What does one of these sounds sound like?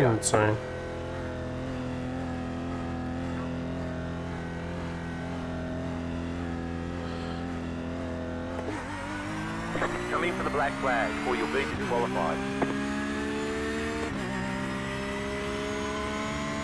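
A race car engine hums steadily, then revs up through the gears.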